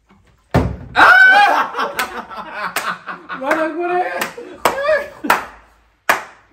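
Young men shout and cheer excitedly.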